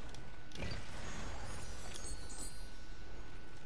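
A bright magical chime shimmers as an item is picked up.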